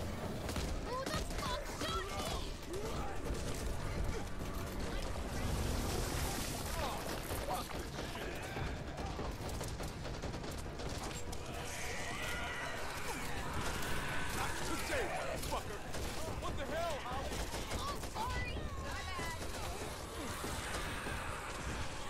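Gunshots crack rapidly.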